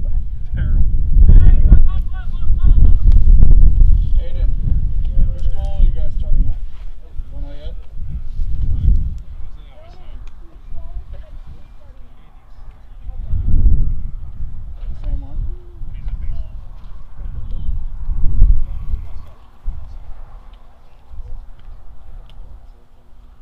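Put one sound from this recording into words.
Distant players call out faintly across an open field.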